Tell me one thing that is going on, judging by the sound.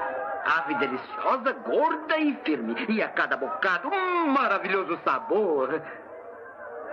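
An elderly man speaks loudly and with animation.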